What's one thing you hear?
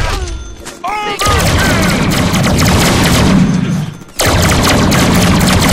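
Guns fire rapid bursts of shots.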